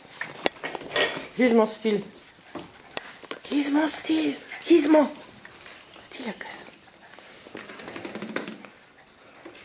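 Two dogs growl and yip playfully while wrestling.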